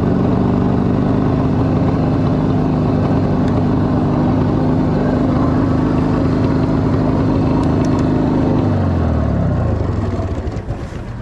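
A motorcycle engine roars loudly while riding, then winds down as the bike slows.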